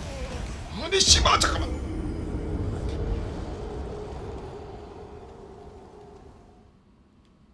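A fire bursts with a roaring whoosh.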